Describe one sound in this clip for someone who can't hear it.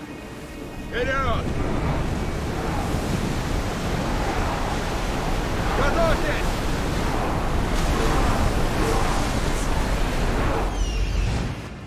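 Waves rush and splash against a ship's hull.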